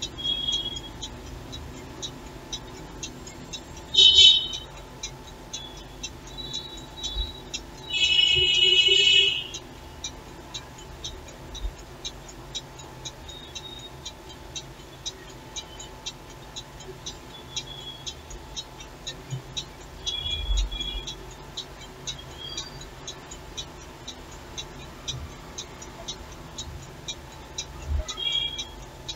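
A clock ticks steadily close by.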